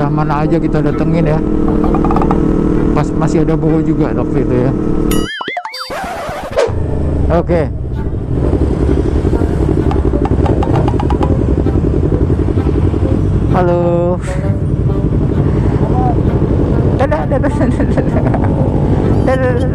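A motorcycle engine rumbles and revs up close.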